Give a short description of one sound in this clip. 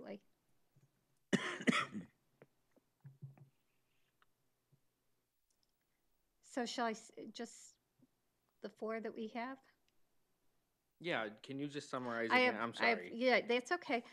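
A middle-aged woman speaks through a microphone in short bursts, with pauses.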